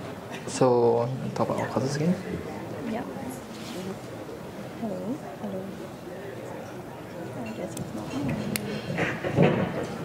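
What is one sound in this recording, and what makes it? A man speaks into a microphone over loudspeakers in a large echoing room.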